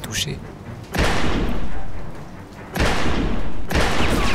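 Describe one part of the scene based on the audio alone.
Pistol shots ring out loudly, each followed by a booming echo.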